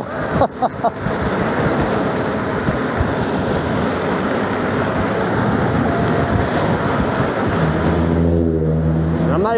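Wind rushes loudly past a moving rider.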